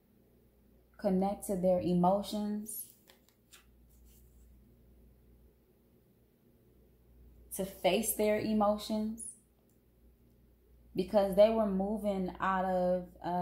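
A woman speaks calmly and close by, in short bursts.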